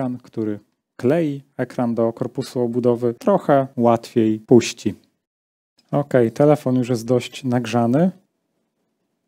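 A man talks calmly and close to a microphone.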